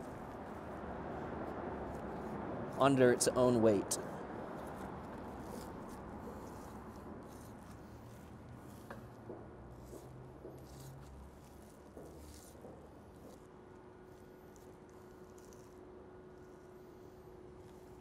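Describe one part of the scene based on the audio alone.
A knife slices softly through raw meat.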